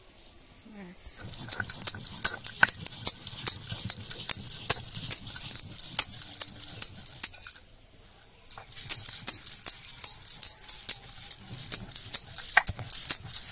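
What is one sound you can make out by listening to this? A stone grinder scrapes and grinds rhythmically against a flat stone.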